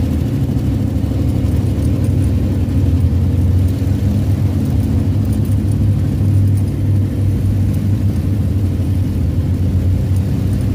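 A dune buggy engine drones loudly and steadily up close.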